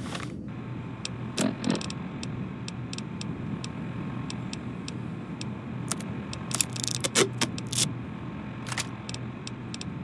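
Short electronic clicks tick repeatedly as a game menu is scrolled.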